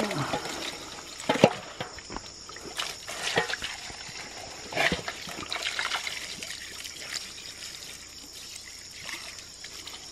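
A metal scoop scrapes and rustles through a basket.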